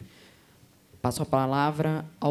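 A woman speaks clearly into a microphone over a loudspeaker.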